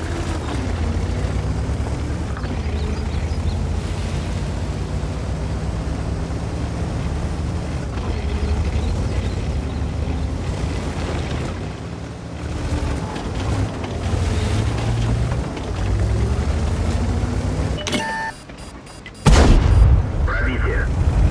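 A tank engine rumbles steadily as the tank drives.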